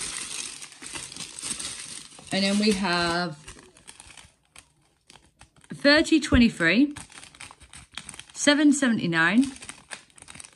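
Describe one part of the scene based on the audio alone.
Plastic bags crinkle and rustle as hands handle them.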